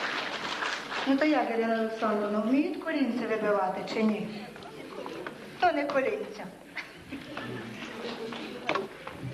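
A man speaks calmly into a microphone, heard through loudspeakers in a large hall.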